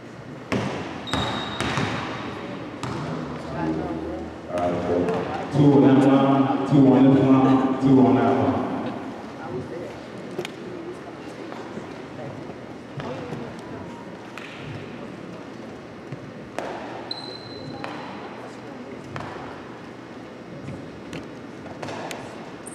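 Basketballs bounce on a wooden floor with echoing thuds.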